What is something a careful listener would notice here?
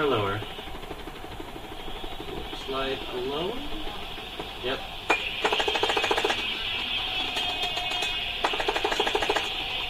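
Rock music with electric guitar plays through a television loudspeaker.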